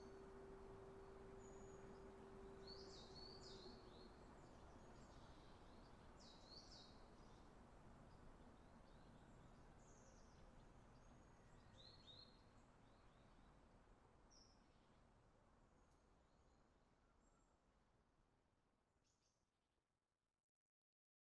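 A steam locomotive chuffs heavily as it climbs, slowly fading away.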